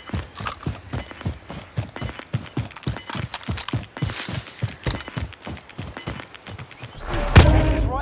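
Footsteps run quickly over dry ground.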